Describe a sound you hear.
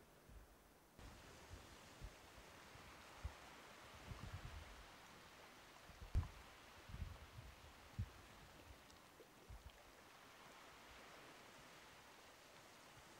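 Gentle waves lap against rocks at the shore.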